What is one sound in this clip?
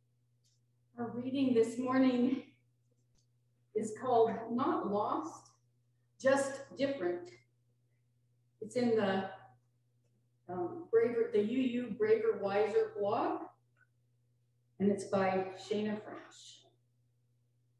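An elderly woman reads aloud calmly through a microphone, pausing between phrases.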